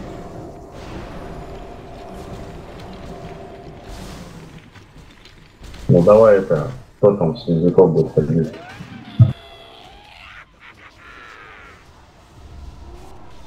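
Magic spells whoosh and hum during a battle.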